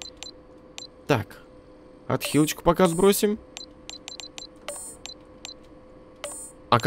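Short electronic menu beeps click one after another.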